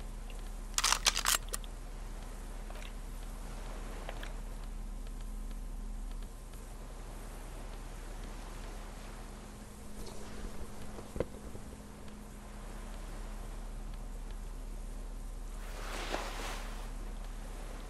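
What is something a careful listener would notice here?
Short menu clicks sound as items are selected.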